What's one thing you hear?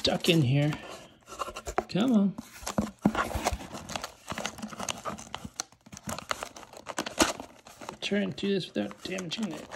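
A cardboard box scrapes and taps against a hard surface.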